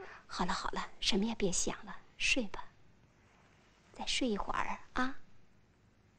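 A woman speaks softly and soothingly close by.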